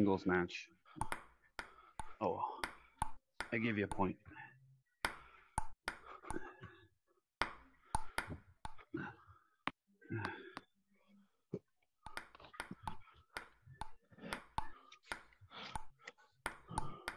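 A table tennis ball clicks sharply against a table and paddles in a quick back-and-forth rally.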